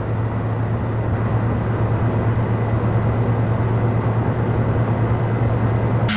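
A single-engine turboprop drones while cruising, heard from inside the cabin.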